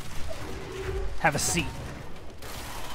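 An explosion bursts with a deep boom.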